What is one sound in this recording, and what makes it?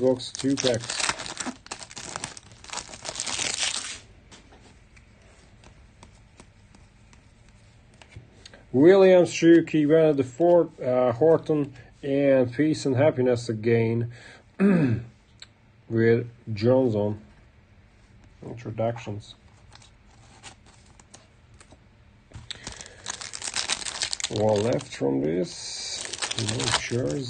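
Foil wrappers crinkle and tear open.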